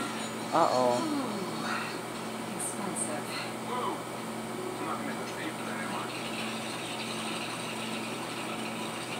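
Video game music and sound effects play from a television loudspeaker.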